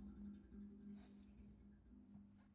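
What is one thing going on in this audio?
Steam hisses from a vent.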